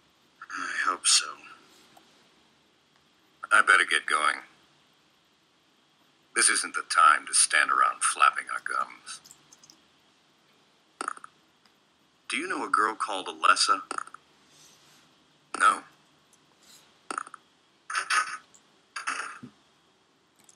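Two men talk calmly, one after the other.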